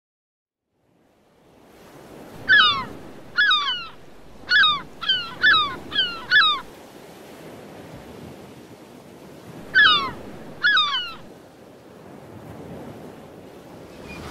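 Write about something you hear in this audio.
Ocean waves wash steadily.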